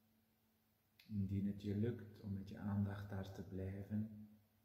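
A middle-aged man speaks slowly and calmly, close by.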